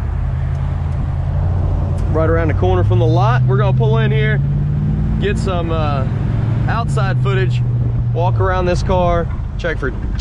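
Wind rushes past an open car.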